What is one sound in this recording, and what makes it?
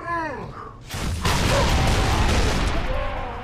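Loud energy blasts go off.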